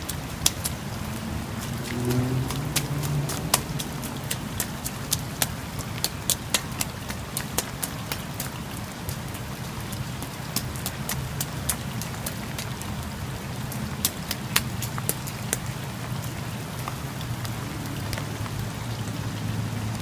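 Raindrops drip and tap in sharp, scattered plinks.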